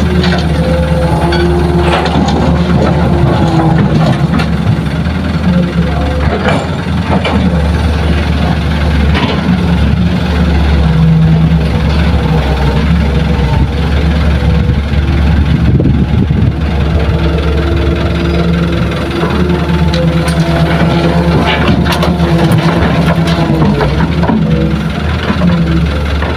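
A diesel engine rumbles steadily nearby.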